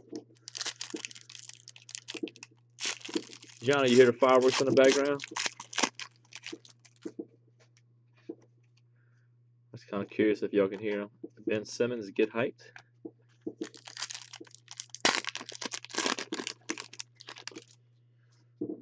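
Foil card packs crinkle and rustle.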